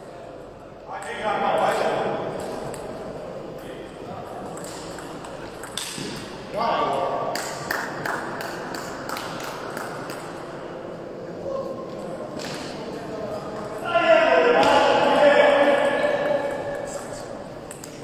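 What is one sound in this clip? A man shouts loudly after a point.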